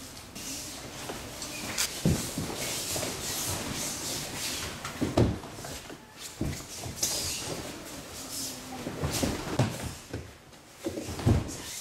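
Loose cloth swishes and rustles with quick movements.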